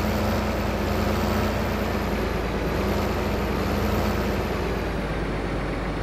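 A combine harvester drones steadily.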